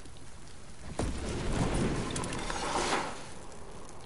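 Wind rushes loudly past during a glide.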